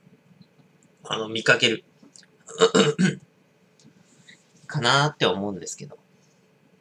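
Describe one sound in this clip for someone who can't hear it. A man speaks calmly close to the microphone, in short bursts.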